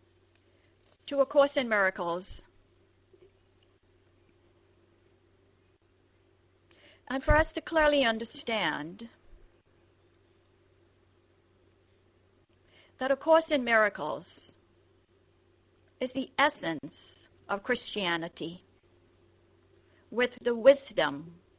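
A woman speaks in short bursts with pauses between them.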